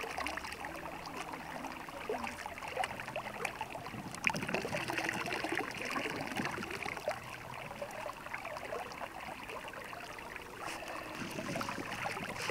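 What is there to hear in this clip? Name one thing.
Water splashes as a bowl is dipped and rinsed in a shallow stream.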